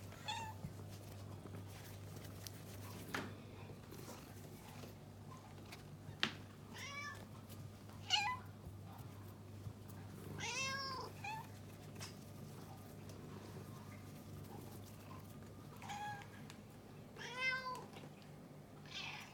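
Cats meow close by, several times.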